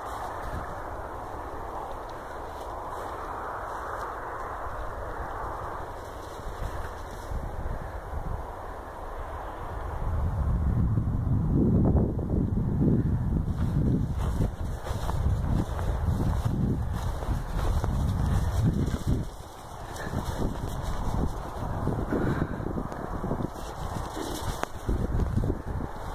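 Wind blows and buffets outdoors, gusting harder after a while.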